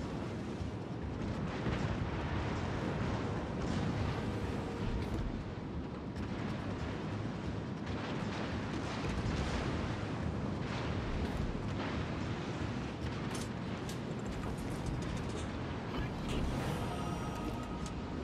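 Distant gunfire booms and shells explode in the water.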